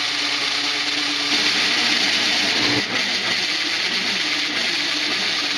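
A milling machine hums and whirs steadily close by.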